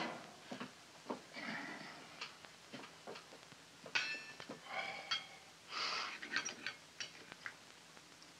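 Dishes and cutlery clink on a table.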